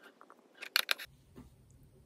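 A computer mouse clicks.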